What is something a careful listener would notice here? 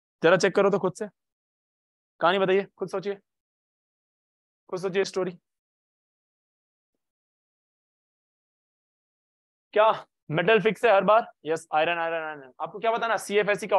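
A young man speaks with animation into a close microphone, in short bursts with pauses.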